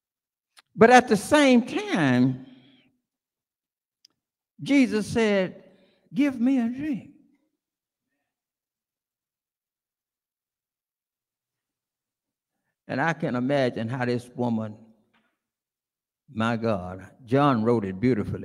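An elderly man preaches with feeling through a microphone, pausing between phrases.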